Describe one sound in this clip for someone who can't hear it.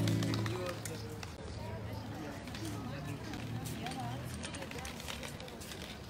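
A violin plays a lively melody outdoors.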